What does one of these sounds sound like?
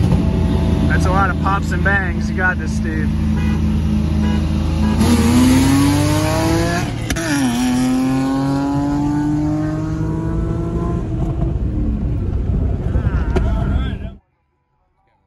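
A car engine roars loudly and revs up and down through the gears.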